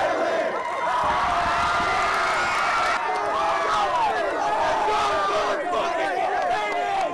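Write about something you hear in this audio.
A large crowd roars in an echoing arena.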